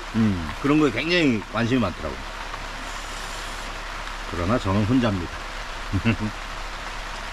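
An older man talks calmly and expressively close by.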